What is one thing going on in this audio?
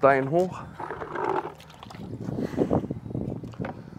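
A trowel scrapes wet mortar in a bucket.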